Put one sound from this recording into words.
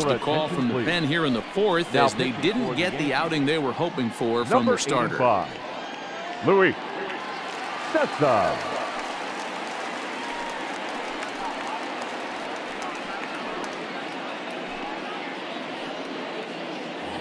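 A large crowd murmurs steadily in a big open stadium.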